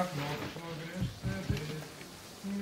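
A door is pulled shut with a thud.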